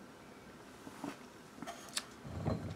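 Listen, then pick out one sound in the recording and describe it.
A man smacks his lips and exhales.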